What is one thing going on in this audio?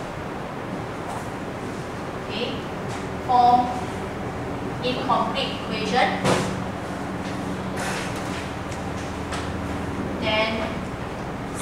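A marker squeaks on a whiteboard.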